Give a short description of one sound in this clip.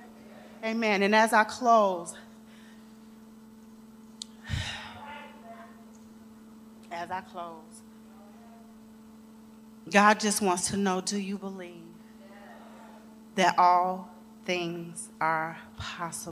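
A woman speaks with animation through a microphone, pausing between phrases.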